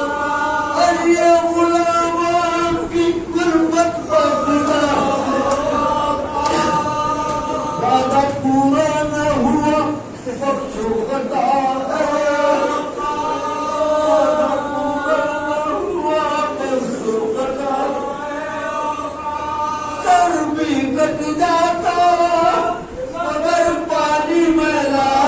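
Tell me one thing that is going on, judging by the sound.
A middle-aged man sings with feeling into a microphone, heard through a loudspeaker in a reverberant room.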